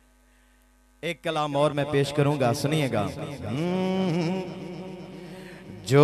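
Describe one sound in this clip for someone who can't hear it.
A man chants melodically through a loud microphone.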